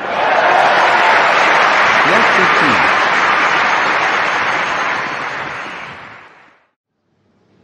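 A crowd applauds loudly, then fades away.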